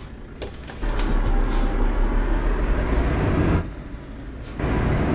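A truck engine rumbles low inside the cab.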